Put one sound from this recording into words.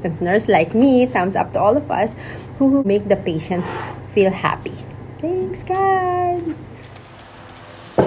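A young woman talks cheerfully and close up.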